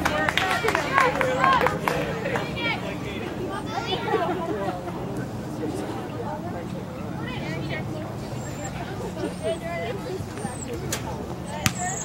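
Spectators nearby call out and cheer.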